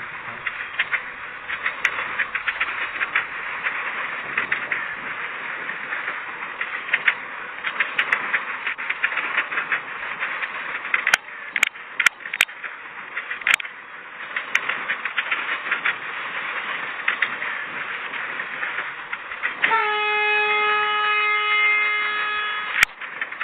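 A train rumbles and clatters steadily along the rails.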